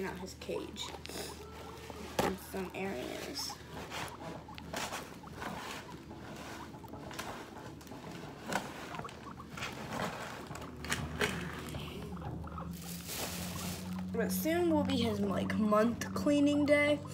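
A guinea pig chews food with soft crunching.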